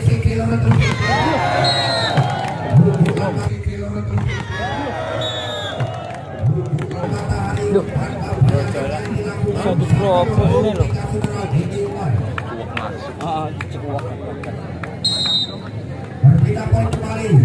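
A crowd of spectators chatters and cheers outdoors.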